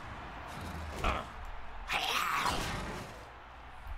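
A large beast bellows in pain.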